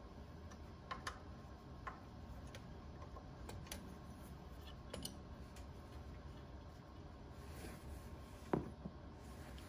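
A metal wrench clinks against metal parts.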